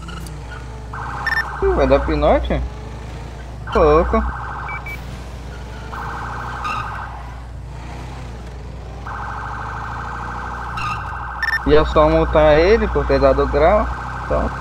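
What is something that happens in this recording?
A police siren blares in repeated bursts.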